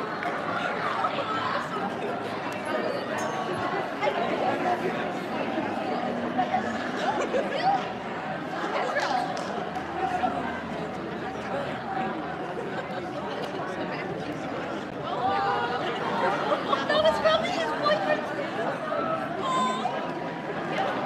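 A crowd of adults chatters quietly in a large echoing hall.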